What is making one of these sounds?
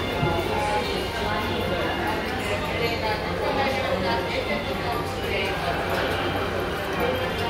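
Footsteps click and shuffle on a hard floor.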